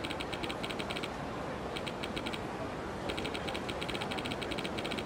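Short electronic blips tick rapidly in bursts.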